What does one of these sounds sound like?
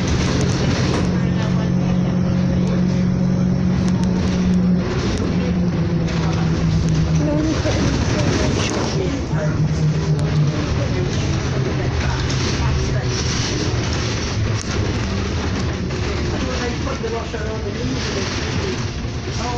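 A bus engine hums and drones steadily as the bus drives along.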